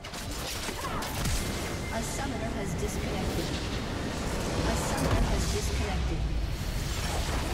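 Magical spell effects crackle and clash in a fast battle.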